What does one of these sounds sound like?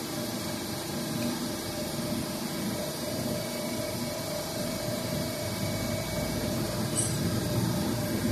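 A hydraulic embossing press hums steadily.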